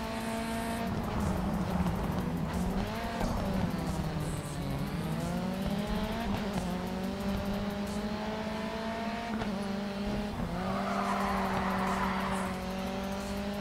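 Tyres screech as a racing car slides through a corner.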